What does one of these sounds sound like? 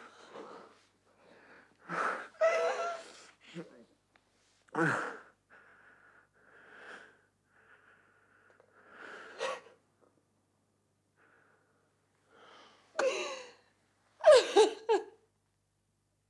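A young woman sobs and cries out in distress, close by.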